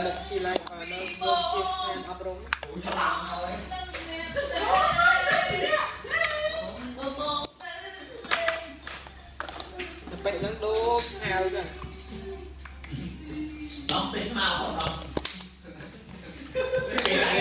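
Plastic toy egg halves click and snap together.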